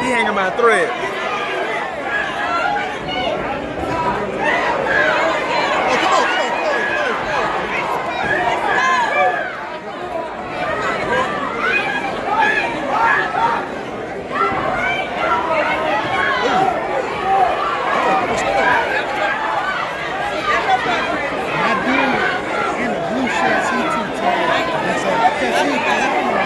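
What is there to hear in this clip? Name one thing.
A crowd of men and women shouts and cheers nearby in an echoing hall.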